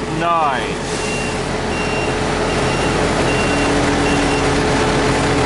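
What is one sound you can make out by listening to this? A fuel pump beeps in short, evenly spaced high beeps.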